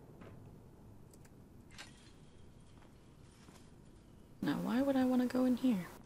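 A metal mesh gate swings open and shut.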